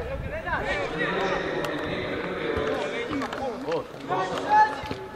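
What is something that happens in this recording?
Young men shout across an open field.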